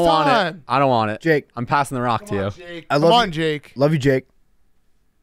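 A young man talks into a microphone with animation, close up.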